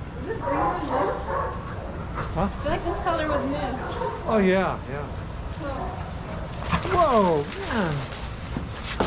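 Dogs whine and yelp in high, sliding cries.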